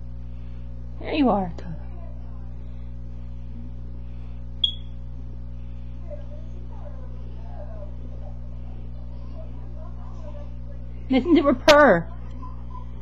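A cat meows loudly close by.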